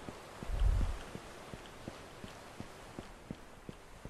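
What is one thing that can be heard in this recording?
Footsteps tap steadily on a metal deck.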